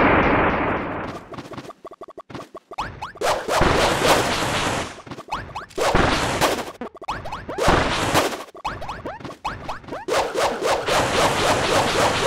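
Quick whooshes and thumps of a fight go on in bursts.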